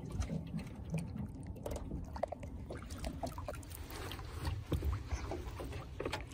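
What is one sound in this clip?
Water splashes and swishes close by as a hand dips into it.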